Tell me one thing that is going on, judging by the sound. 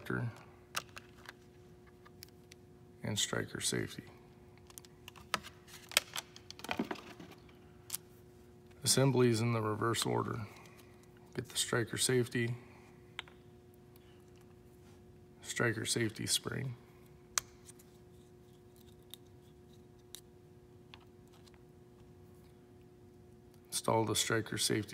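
Small metal and plastic parts click and tap together.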